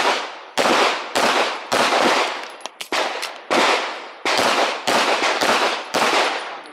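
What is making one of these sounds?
A pistol fires rapid shots outdoors, each echoing off the surrounding hills and trees.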